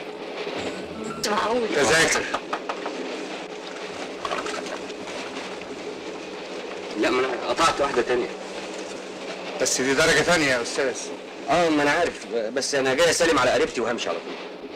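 A man speaks cheerfully.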